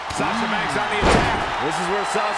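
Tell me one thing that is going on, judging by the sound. A heavy body slams onto a wrestling mat with a thud.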